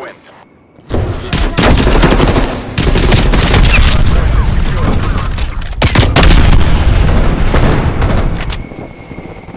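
A rifle fires rapid bursts of loud gunshots.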